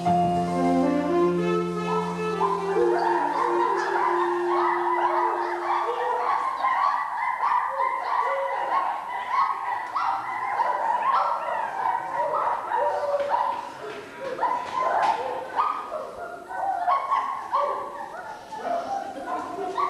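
A group of people sing a lively tune together in a large hall.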